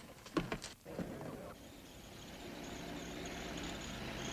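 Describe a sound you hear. An old car engine chugs as the car approaches along a dirt road.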